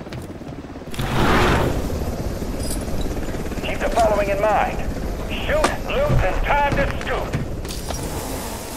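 A helicopter's rotor drones loudly close by.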